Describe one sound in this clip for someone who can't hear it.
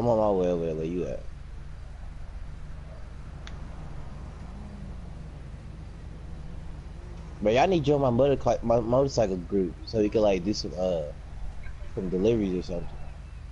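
A motorbike engine idles steadily.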